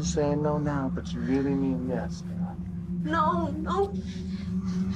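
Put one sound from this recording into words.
A young woman squeals and laughs up close.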